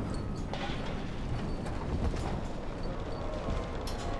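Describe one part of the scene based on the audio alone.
Footsteps thump across a sheet metal roof.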